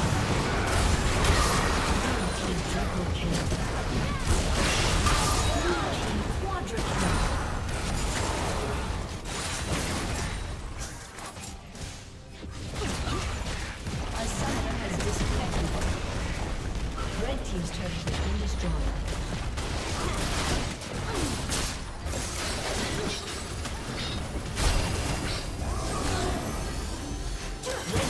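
Fantasy battle sound effects crackle and boom in quick bursts.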